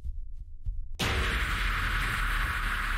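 A creature lets out a loud, harsh screech up close.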